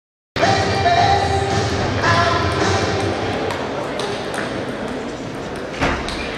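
A ping-pong ball clicks back and forth on a table and paddles.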